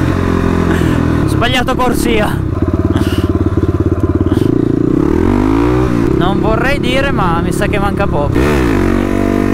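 A motorcycle engine hums and revs up and down.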